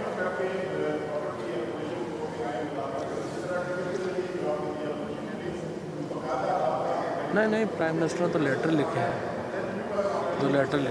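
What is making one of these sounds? An elderly man speaks calmly into microphones.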